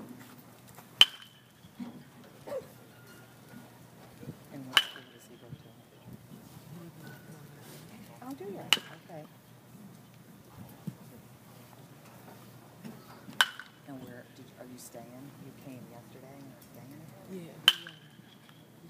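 A metal bat cracks against a baseball, sharp and ringing, every few seconds.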